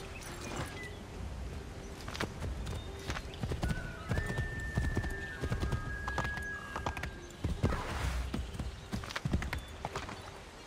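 A horse gallops with heavy hoofbeats on the ground.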